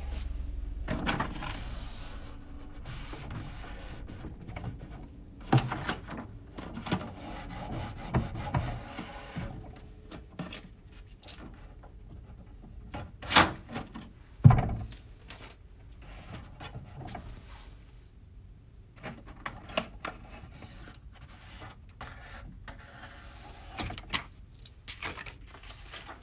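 Plastic film crinkles and rustles as it is peeled.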